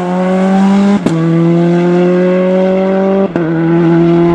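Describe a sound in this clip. Gear changes crack sharply as a rally car accelerates.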